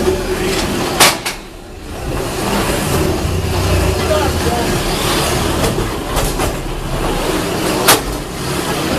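Metal robots crash into each other with loud bangs.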